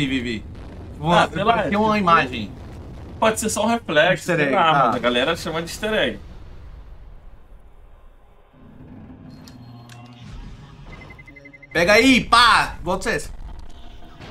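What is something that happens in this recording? A second man laughs and talks over an online call.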